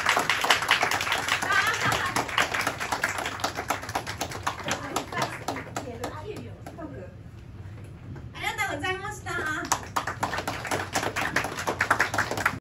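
A young woman sings energetically into a microphone through loudspeakers.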